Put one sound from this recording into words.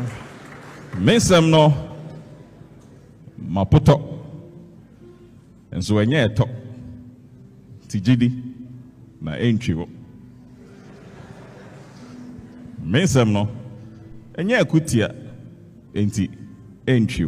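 A man recites loudly and dramatically into a microphone, with pauses.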